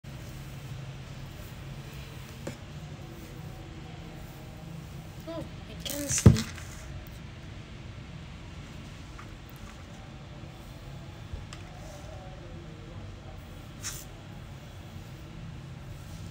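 Hands rustle through long hair close by.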